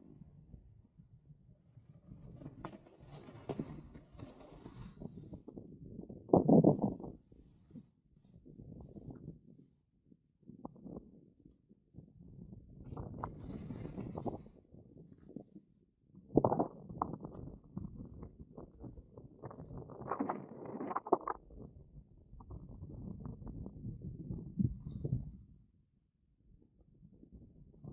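A snowboard scrapes and hisses over snow in bursts.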